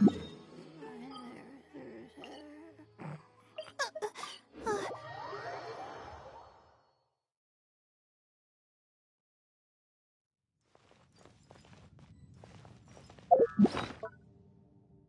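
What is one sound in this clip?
Short game menu chimes and clicks sound as options are picked.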